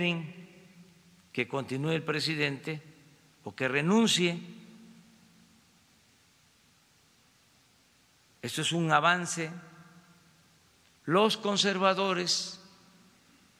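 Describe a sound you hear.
An elderly man speaks calmly into a microphone, with long pauses, in an echoing room.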